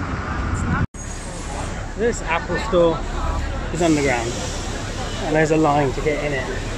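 Men and women chat nearby in a busy crowd.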